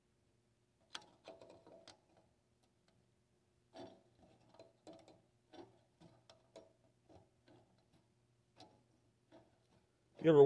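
Pliers click and snip faintly against metal wires.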